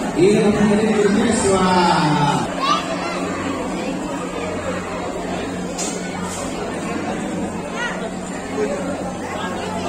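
A crowd of women and children chatters in a large echoing hall.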